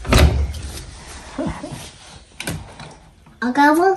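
A washing machine door thuds shut.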